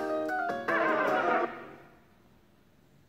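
A game on a tablet plays a short cheerful tune that quickly fades.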